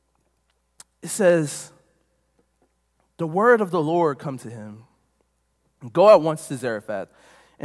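A man speaks through a microphone in bursts, with pauses between phrases.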